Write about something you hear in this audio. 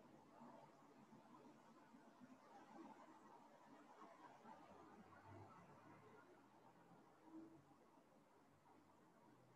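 An elderly woman speaks calmly through an online call.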